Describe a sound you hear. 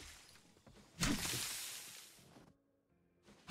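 Leafy crop plants rustle as they are pulled up.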